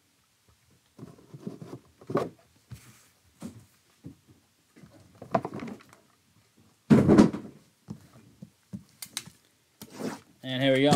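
Gloved hands slide and tap against a cardboard box.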